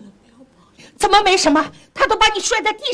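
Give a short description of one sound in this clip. A middle-aged woman speaks loudly and with agitation, close by.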